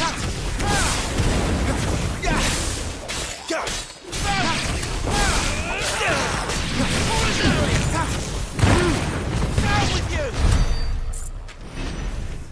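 A blade slashes and clangs.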